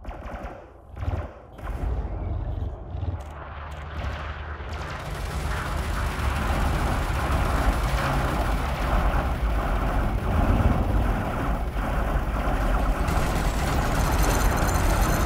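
Laser guns fire in bursts.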